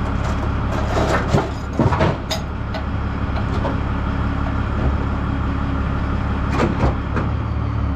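Metal clanks sharply against a heavy track.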